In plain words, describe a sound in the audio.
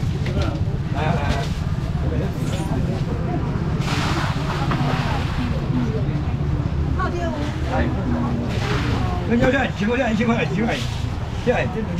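Plastic baskets clatter and knock.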